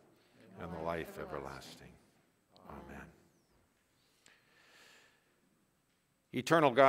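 A man speaks or sings slowly through a microphone in a large echoing room.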